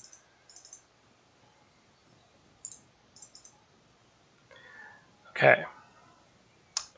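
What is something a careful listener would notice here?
Short, soft interface clicks tick now and then.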